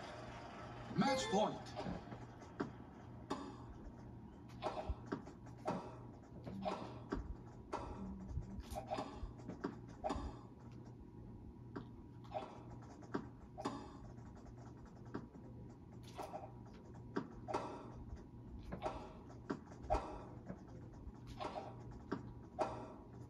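Tennis rackets hit a ball back and forth with sharp pops.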